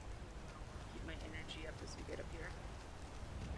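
A young woman speaks briefly into a microphone.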